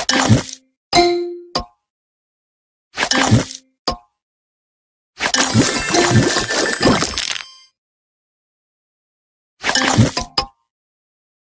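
Bright electronic chimes and pops play in short bursts as game pieces match and clear.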